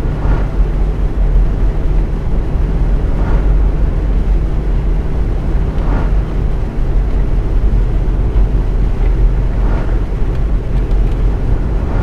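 Tyres hum on asphalt.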